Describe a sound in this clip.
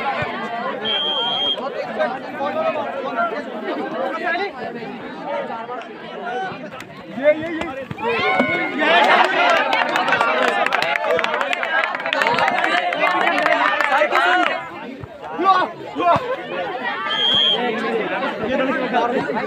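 A large crowd of young men and boys cheers and shouts outdoors.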